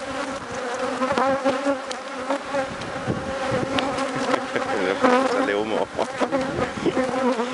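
Wooden hive frames knock and scrape.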